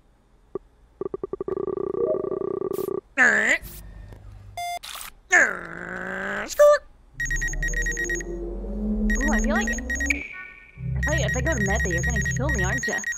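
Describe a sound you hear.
Electronic game beeps and tones chime and buzz.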